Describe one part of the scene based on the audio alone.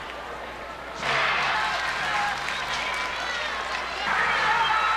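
A large crowd cheers and shouts in a stadium.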